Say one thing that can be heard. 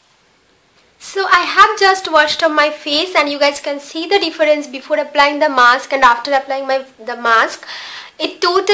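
A young woman talks with animation, close to the microphone.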